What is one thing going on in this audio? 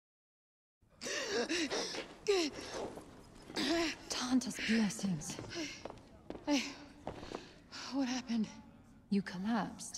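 A young woman speaks in a shaken, breathless voice.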